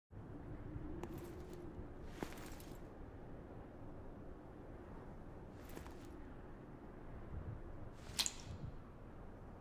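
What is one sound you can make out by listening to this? Soft magical chimes ring out now and then.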